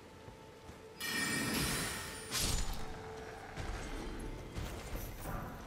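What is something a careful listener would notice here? A magical blast bursts with a loud crackling whoosh.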